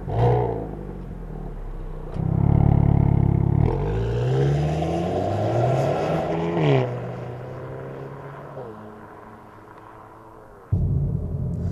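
A car engine revs loudly through its exhaust and pulls away, fading into the distance.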